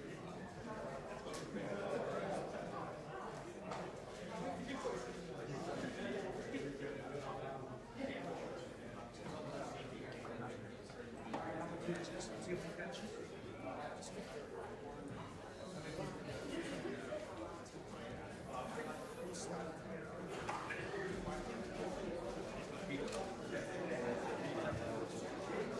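A crowd of people chatters around a room.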